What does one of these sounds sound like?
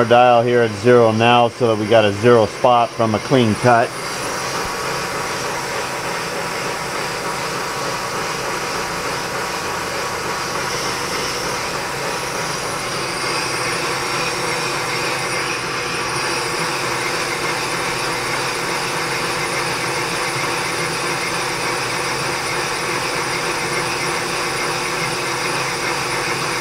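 A cutting tool shaves metal on a lathe with a steady hiss.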